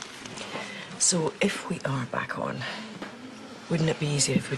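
A young woman talks nearby, cheerfully.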